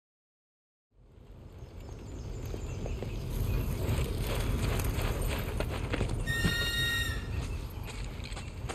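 Footsteps crunch along a dirt path.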